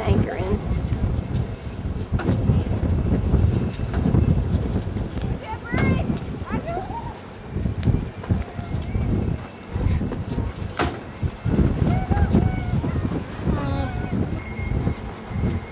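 Wind rumbles and buffets outdoors by open water.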